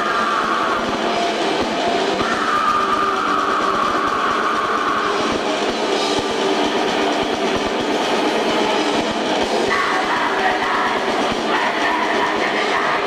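Drums pound steadily on stage.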